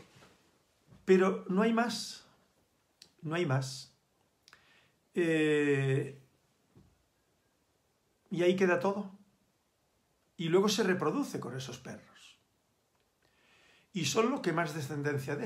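An elderly man speaks calmly and slowly in short phrases, close to a microphone, with pauses between them.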